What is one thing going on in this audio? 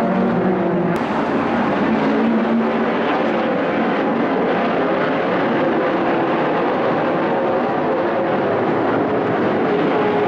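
A pack of racing car engines roars loudly and continuously.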